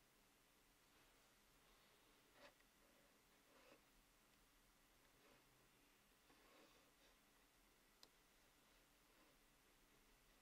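A metal tool scrapes softly across wet clay.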